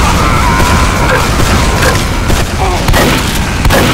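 A shotgun fires a sharp blast.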